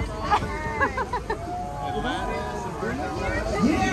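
Young women laugh loudly up close.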